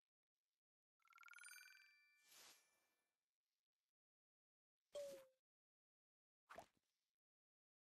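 Game interface chimes and clicks sound as menus open and close.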